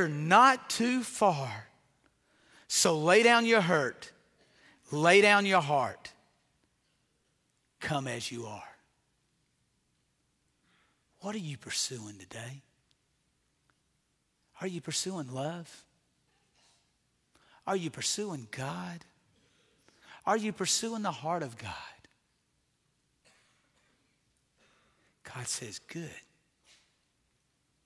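A middle-aged man preaches through a microphone in short, forceful phrases with long pauses, his voice echoing in a large hall.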